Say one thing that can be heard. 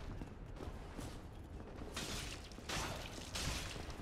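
A sword clangs against armour.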